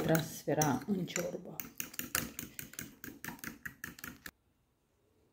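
A whisk beats rapidly against a glass dish.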